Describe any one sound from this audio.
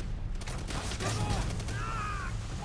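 A flamethrower roars in a burst of flame.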